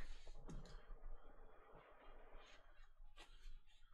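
A cardboard box lid slides off with a soft scrape.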